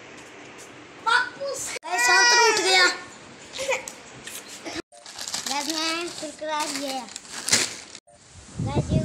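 A boy laughs and talks excitedly close by.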